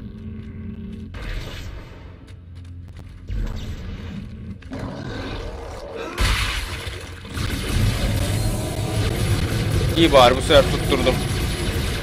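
An energy weapon fires with a sharp crackling burst.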